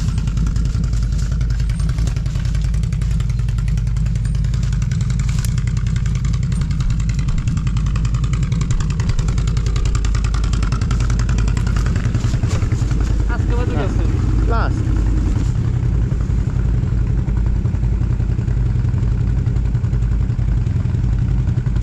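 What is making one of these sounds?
A quad bike engine rumbles and revs close by.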